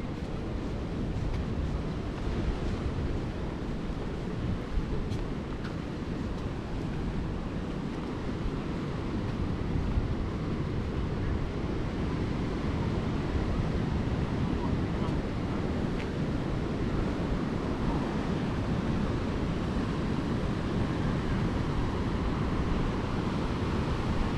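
Waves break on a rocky shore in the distance.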